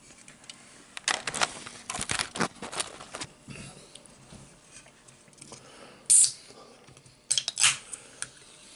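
A metal can clicks and clinks as a man handles it.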